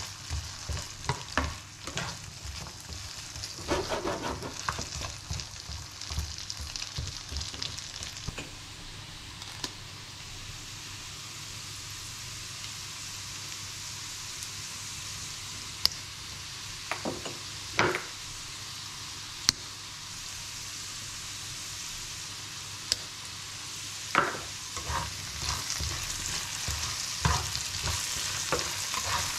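Diced potatoes sizzle as they fry in butter in a frying pan.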